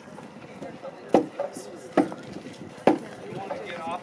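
Mallets knock on wooden beams.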